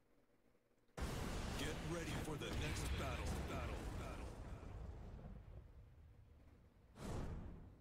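A deep explosion booms and rumbles, then slowly fades.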